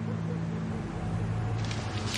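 Paper money rustles in a hand.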